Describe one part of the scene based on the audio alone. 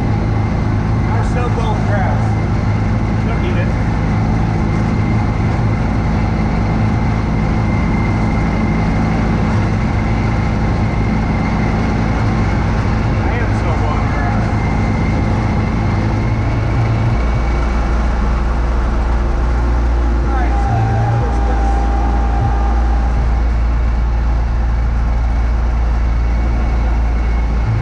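A snow blower engine roars steadily close by.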